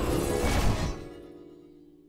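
A heavy blast booms and crackles.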